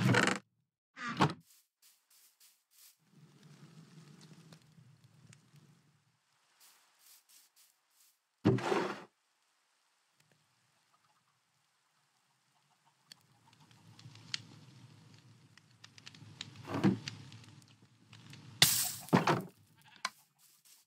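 A campfire crackles nearby.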